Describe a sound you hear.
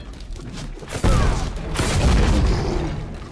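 A heavy blast booms and rumbles.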